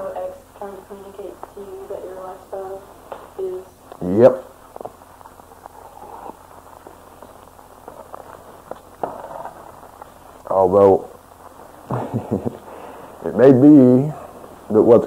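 A man speaks calmly into a nearby microphone, with pauses.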